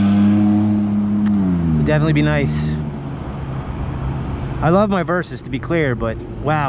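A car engine hums close by, its pitch sinking as it slows.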